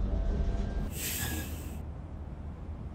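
Air brakes let out a short, sharp hiss.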